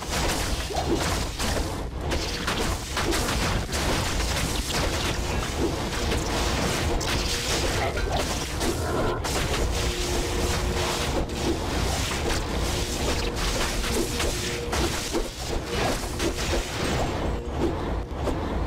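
Giant insects screech and hiss as they are struck.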